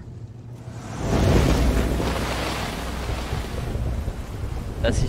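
A car engine roars as the car drives away.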